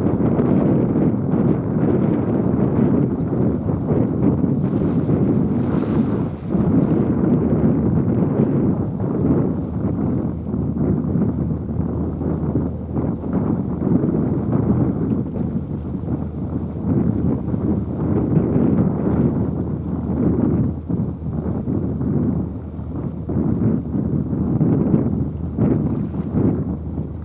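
A large ship's engine rumbles low and steady as the ship passes.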